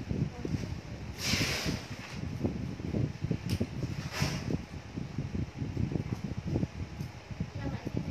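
Fabric rustles as a garment is handled.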